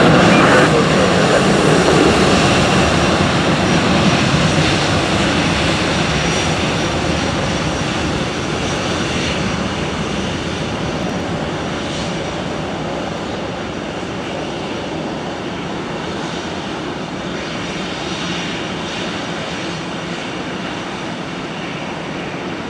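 A jet engine roars loudly nearby and slowly fades as an airliner moves along a runway.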